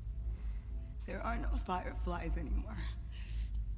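A woman answers calmly and quietly.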